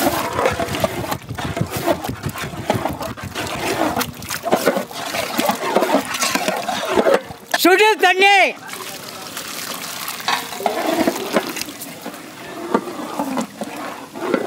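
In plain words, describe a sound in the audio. A wooden ladle stirs a thick, bubbling curry in a large pot.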